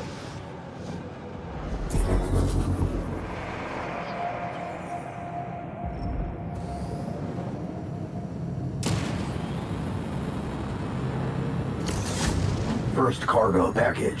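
A spaceship engine hums and roars steadily.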